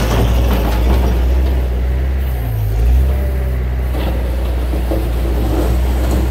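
A loader bucket scrapes through gravel.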